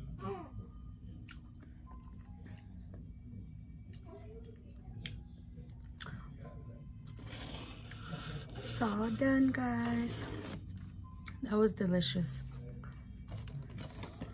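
A young woman chews food close to a microphone.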